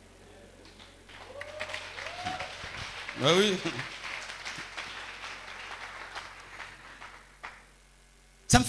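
A crowd laughs and cheers.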